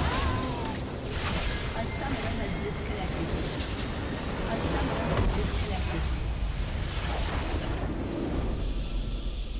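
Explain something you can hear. Game spell effects crackle and boom in a battle.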